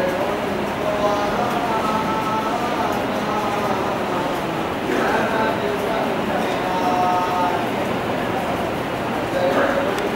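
A man speaks steadily, his voice echoing in the hall.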